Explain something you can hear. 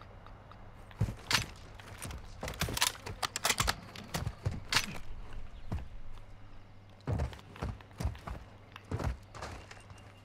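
Guns fire in quick sharp bursts.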